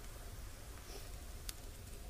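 Burgers sizzle on a grill.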